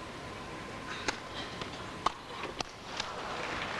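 A tennis ball is hit back and forth with sharp pops.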